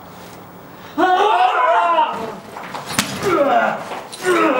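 A woman shouts angrily close by.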